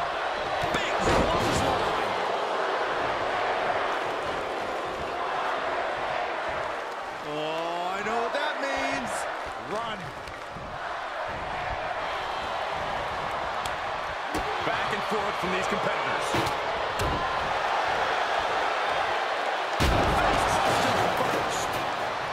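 Heavy bodies slam down onto a wrestling mat with loud thuds.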